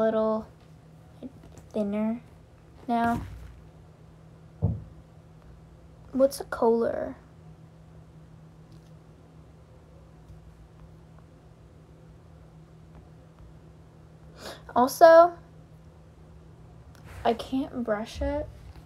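A young woman speaks in short bursts close to the microphone, with long pauses between.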